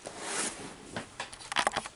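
Rustling and knocking sound close to the microphone as a hand reaches toward it.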